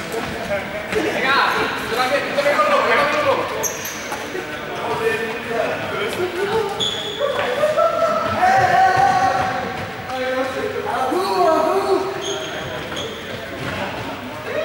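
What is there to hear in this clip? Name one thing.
Young people shout and call out in a large echoing hall.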